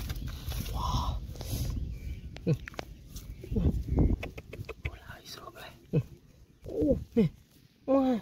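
Fingers brush through loose dirt.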